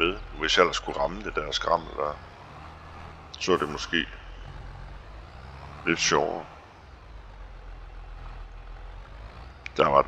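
A tractor engine idles with a low, steady rumble.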